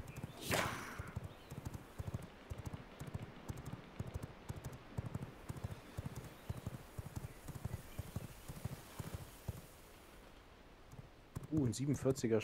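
Footsteps patter rhythmically on a path.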